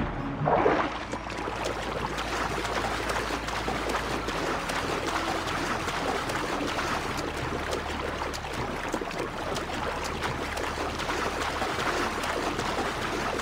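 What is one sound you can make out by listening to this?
Water splashes steadily as a swimmer paddles quickly.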